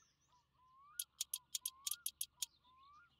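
A ratchet wrench clicks in quick turns.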